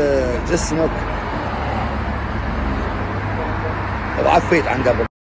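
An elderly man speaks calmly, close to a phone microphone.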